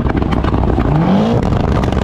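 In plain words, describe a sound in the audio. A motorbike engine revs.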